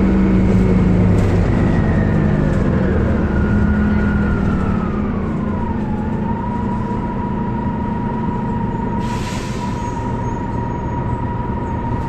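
A bus engine rumbles steadily close by.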